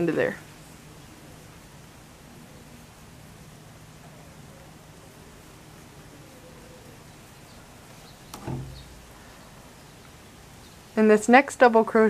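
A crochet hook softly draws yarn through stitches.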